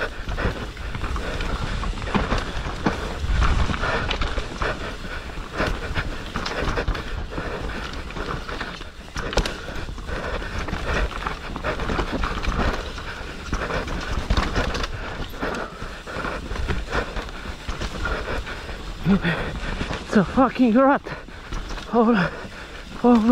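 A bicycle frame rattles and clatters over bumps.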